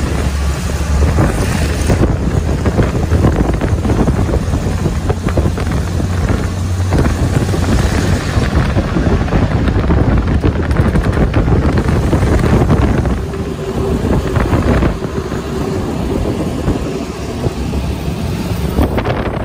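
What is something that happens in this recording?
A train engine rumbles loudly and steadily close by.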